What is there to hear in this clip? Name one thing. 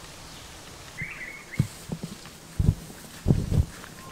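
Dull thumps and scrapes sound as a person climbs a tree trunk.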